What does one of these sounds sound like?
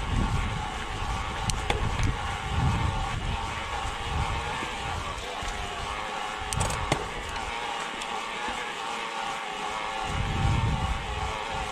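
Wind rushes against the microphone outdoors.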